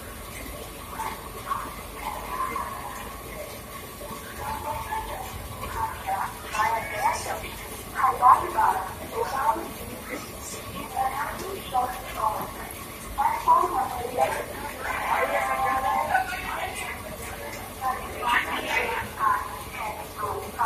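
Men and women chatter on a platform nearby.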